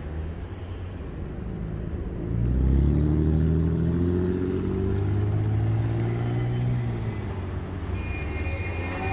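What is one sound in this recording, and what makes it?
Traffic hums steadily on a street outdoors.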